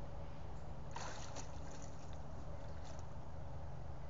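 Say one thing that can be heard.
Water sloshes and splashes as a large animal wades through it.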